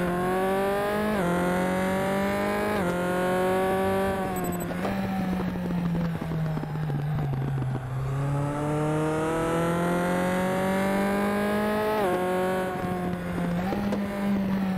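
A race car engine revs high and drops as the gears shift.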